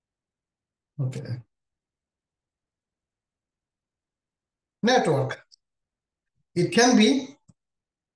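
A man speaks calmly in short phrases through a microphone.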